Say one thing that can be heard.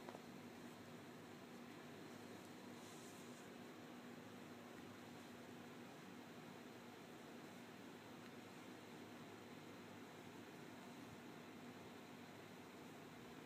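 A small dog rustles and burrows in a soft blanket.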